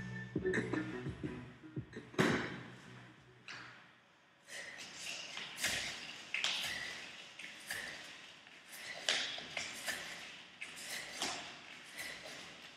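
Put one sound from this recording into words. Hands and feet thump softly on an exercise mat.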